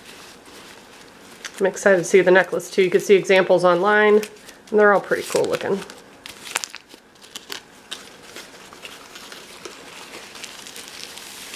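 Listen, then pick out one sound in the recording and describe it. Aluminium foil crinkles and rustles as it is handled.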